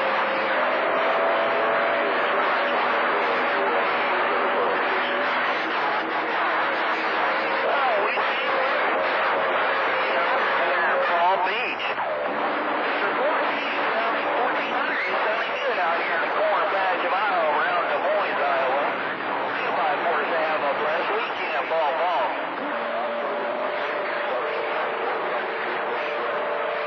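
A radio receiver hisses with loud, rough static.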